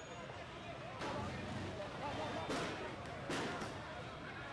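A loud bang goes off with smoke.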